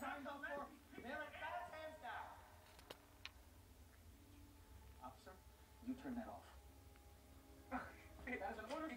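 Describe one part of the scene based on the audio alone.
A puppy yelps and whines playfully close by.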